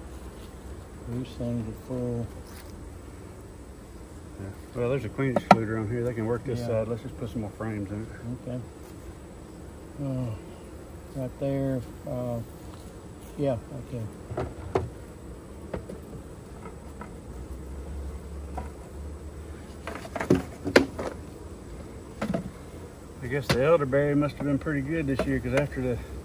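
A man talks calmly nearby.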